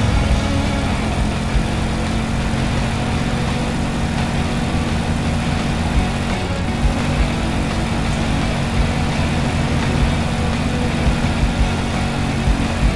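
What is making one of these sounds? A game vehicle's engine hums steadily as it races along.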